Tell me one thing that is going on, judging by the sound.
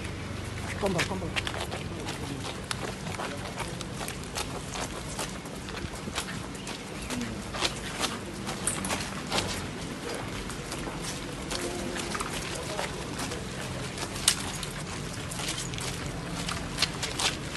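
Tyres roll slowly on wet paving.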